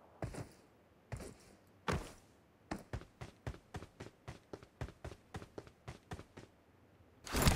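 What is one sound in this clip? Footsteps run across a corrugated metal roof.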